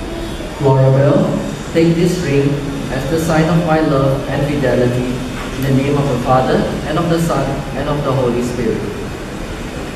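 A man speaks slowly and solemnly into a microphone in a reverberant hall.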